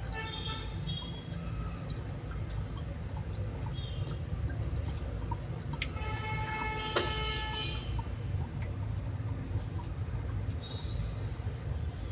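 A young woman makes throaty gagging noises close by.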